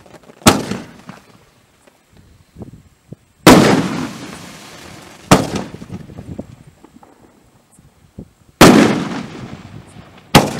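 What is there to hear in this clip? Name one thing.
Fireworks burst with loud booms, one after another.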